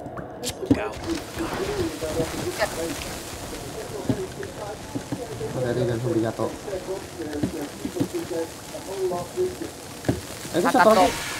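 Thermite burns with a steady, sizzling hiss.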